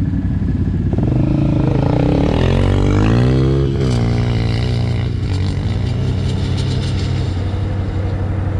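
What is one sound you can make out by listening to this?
A quad bike engine revs loudly as the bike speeds past close by and then fades into the distance.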